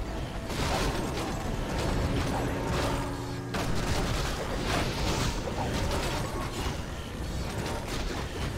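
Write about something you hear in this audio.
Spells burst and swords clash in a busy game battle.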